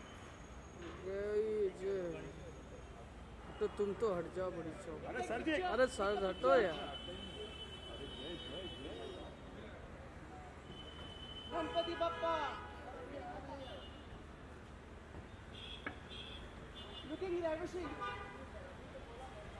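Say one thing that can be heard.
Men call out and shout nearby.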